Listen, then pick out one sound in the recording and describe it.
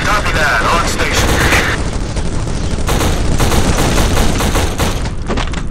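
An automatic rifle fires rapid bursts in an echoing hall.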